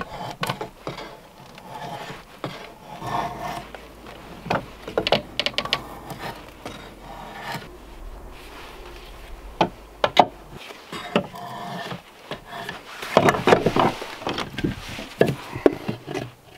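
A drawknife scrapes and shaves wood in short strokes.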